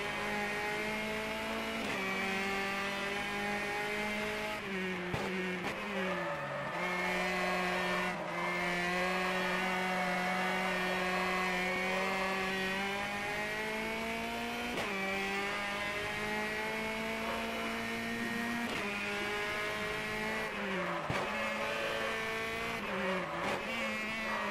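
A racing car engine roars, rising in pitch as it speeds up and dropping sharply at each gear change and slowdown.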